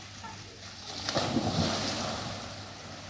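Water splashes in a pool.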